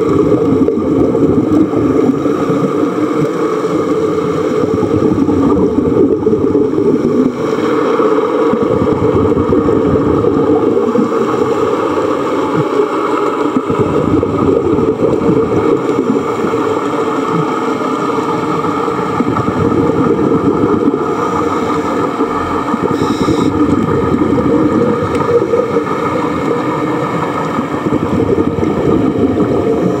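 A diver breathes through a regulator underwater.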